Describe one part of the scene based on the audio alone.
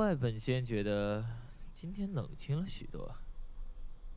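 A young man speaks calmly and softly up close.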